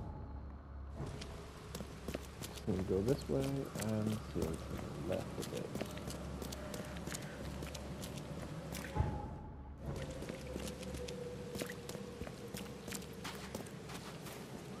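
Footsteps tread on wet ground at a quick pace.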